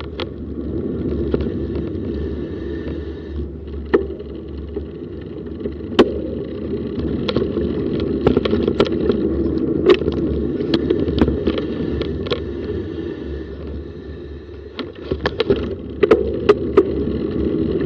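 A bicycle rattles and clatters over bumps in the pavement.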